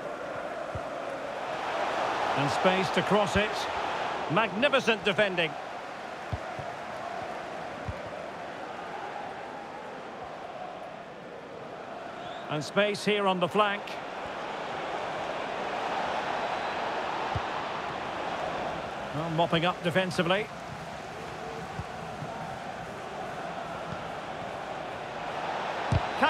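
A large stadium crowd roars and murmurs steadily, swelling now and then.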